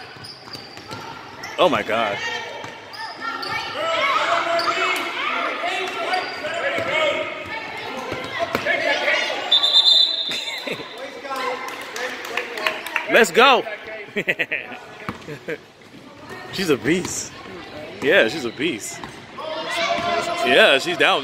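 Sneakers squeak on a gym floor.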